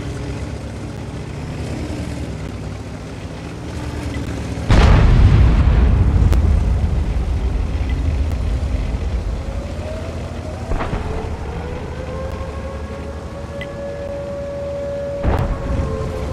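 Tank tracks clatter over dirt.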